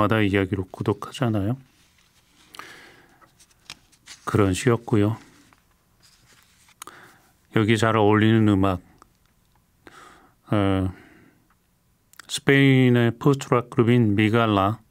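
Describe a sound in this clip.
A middle-aged man speaks calmly and closely into a microphone, in short phrases with pauses.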